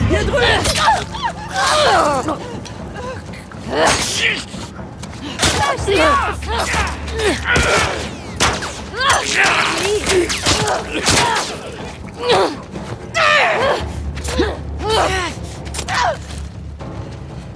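A young woman grunts with effort.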